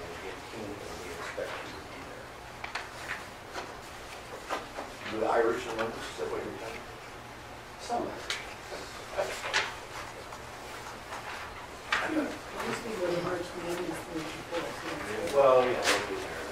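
Paper rustles as sheets are handled and turned.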